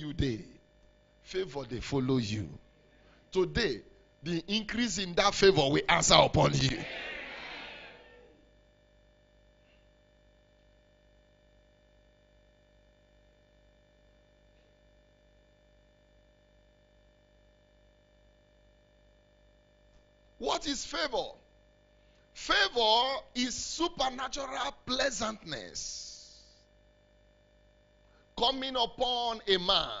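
A man preaches forcefully into a microphone over a loudspeaker, in a reverberant hall.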